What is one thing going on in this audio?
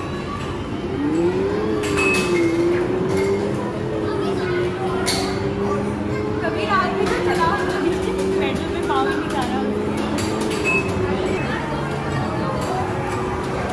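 A racing arcade game's engine hums and revs steadily.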